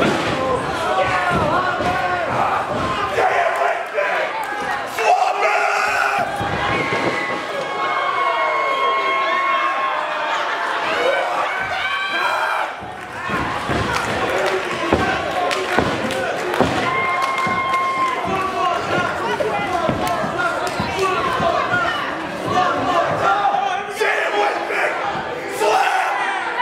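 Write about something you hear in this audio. A crowd shouts and cheers in an echoing hall.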